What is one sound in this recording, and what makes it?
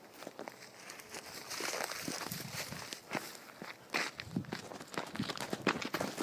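A hand rubs and fumbles close by.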